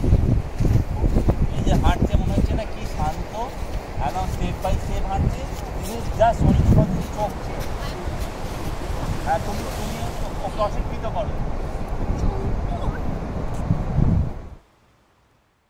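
Wind blows hard outdoors.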